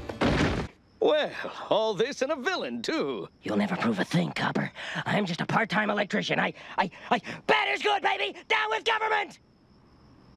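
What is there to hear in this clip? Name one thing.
A man speaks with animation in a cartoon voice.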